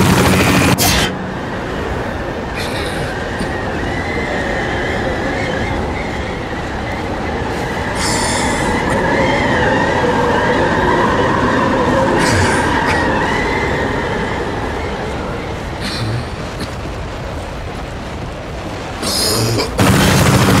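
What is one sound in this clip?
A strong wind howls through a blizzard.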